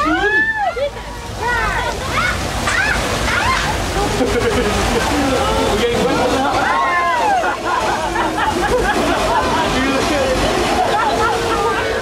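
Water rushes and roars in a loud torrent.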